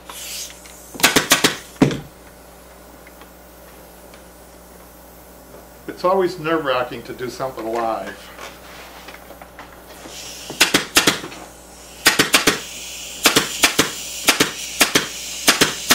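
A staple gun fires with sharp, quick snaps.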